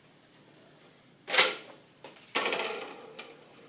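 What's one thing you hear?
A light cup flyer drops onto a hard floor and rolls.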